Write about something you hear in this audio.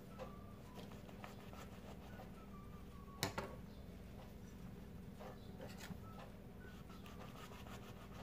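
A knife cuts softly into soft buns.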